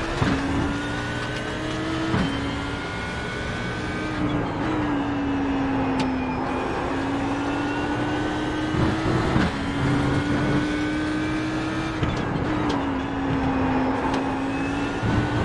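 A race car engine roars at high revs, rising and dropping sharply as the gears shift.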